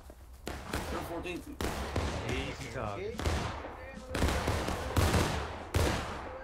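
Muskets fire in loud, echoing bangs, one after another.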